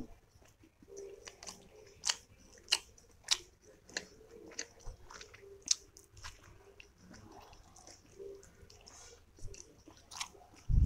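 A woman chews soft food with wet, smacking sounds close to a microphone.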